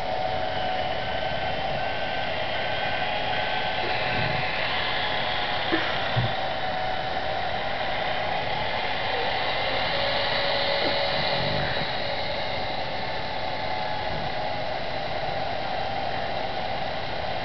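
A tractor engine hums steadily in a game.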